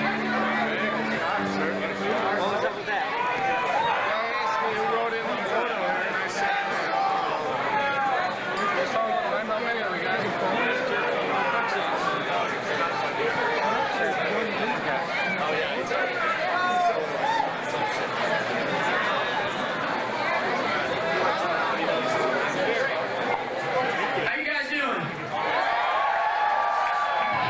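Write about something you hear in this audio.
A large crowd chatters and shouts loudly in a big echoing hall.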